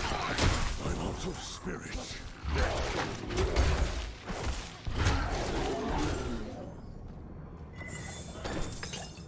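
Magical blasts boom and crackle in bursts.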